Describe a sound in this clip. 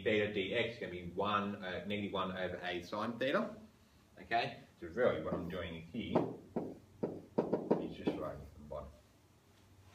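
A man speaks with animation in a slightly echoing room.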